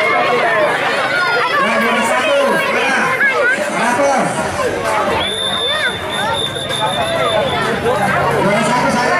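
Children cheer and shout excitedly close by.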